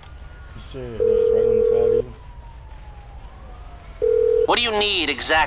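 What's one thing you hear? A phone rings out through an earpiece in steady beeping tones.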